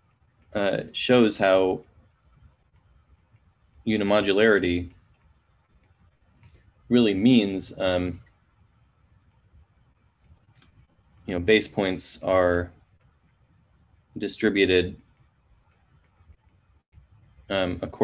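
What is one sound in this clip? A man speaks calmly and slowly in short phrases, close to a microphone as if on an online call.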